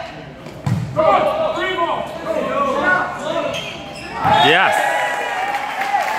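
Young men shout and call out to each other in a large echoing gym.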